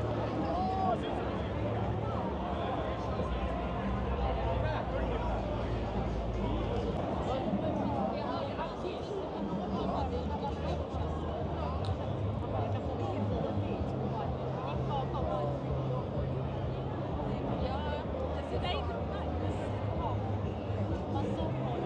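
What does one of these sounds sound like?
Many people chatter at once in a busy street outdoors.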